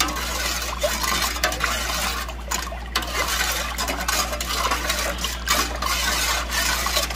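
A metal spoon scrapes and clinks against a pot.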